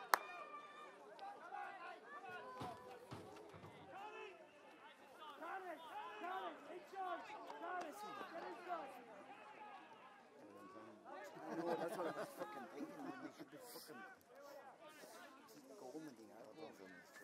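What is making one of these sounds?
Men nearby talk and call out with animation.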